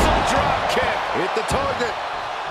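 Heavy bodies thud onto a wrestling mat.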